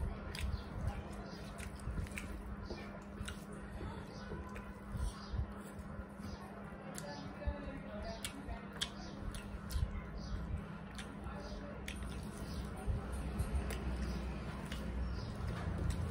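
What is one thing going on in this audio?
Fingers squelch and mix rice on metal plates.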